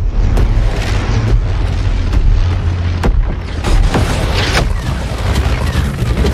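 Explosions boom and crack nearby.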